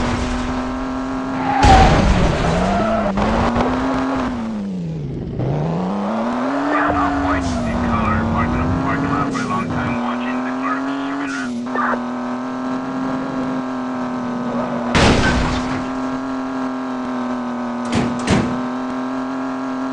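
A car engine drones steadily, its pitch rising and falling as the car speeds up and slows.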